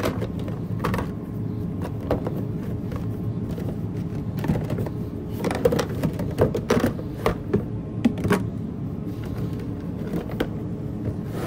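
Plastic squeeze bottles knock and clatter as they are handled.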